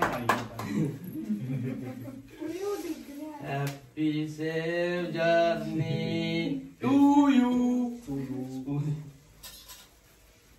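A small group of men and women sings together nearby.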